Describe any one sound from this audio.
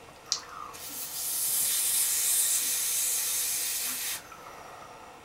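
A man inhales hard with a long, steady hiss.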